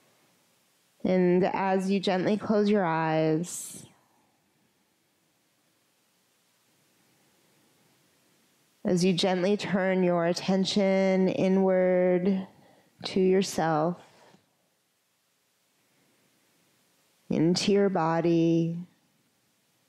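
A woman speaks calmly and softly through a close microphone, with pauses.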